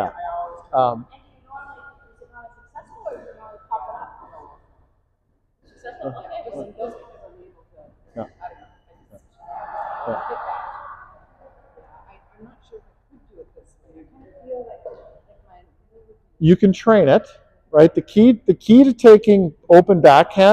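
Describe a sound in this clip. A man talks calmly at a distance in a large echoing hall.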